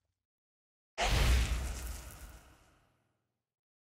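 A burst of rushing noise whooshes and fades.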